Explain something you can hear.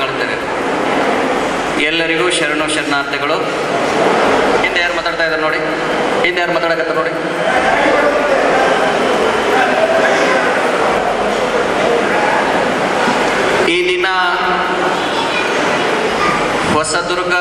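A man speaks with animation into a microphone, heard through a loudspeaker in an echoing hall.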